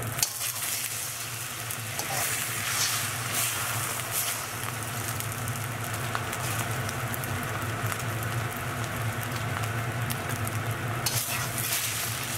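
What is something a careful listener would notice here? A metal spatula scrapes and pushes egg around a pan.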